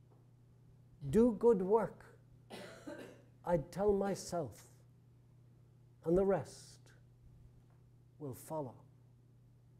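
An elderly man speaks slowly and deliberately, heard through a microphone in a reverberant hall.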